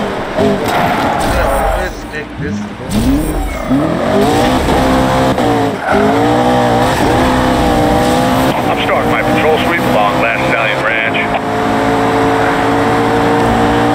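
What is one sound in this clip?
A sports car engine revs high and roars as it accelerates.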